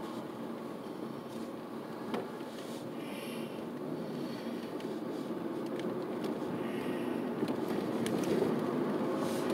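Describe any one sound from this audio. A car engine hums steadily while driving, slowly growing louder.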